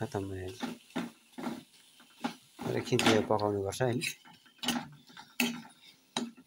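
A spoon scrapes and clatters against a metal pan.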